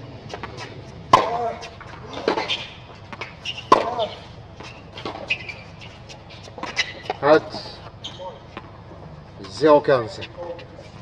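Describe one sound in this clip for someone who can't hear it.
A man grunts loudly as he hits a tennis ball.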